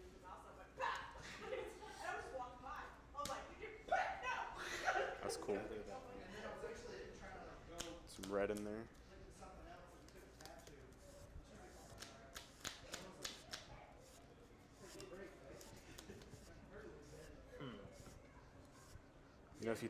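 Playing cards are shuffled and tapped on a table.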